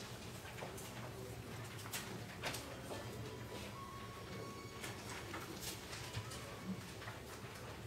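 Paper sheets rustle as pages are turned.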